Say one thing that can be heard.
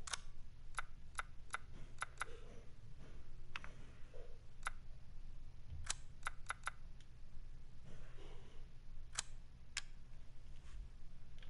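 Short soft clicks sound as a game menu selection moves.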